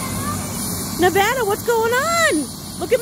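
A young child talks in a high, excited voice close by.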